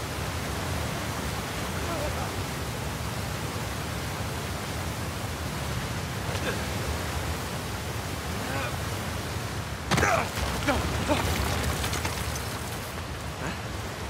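A waterfall roars.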